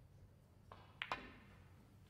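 A snooker cue strikes a ball with a sharp click.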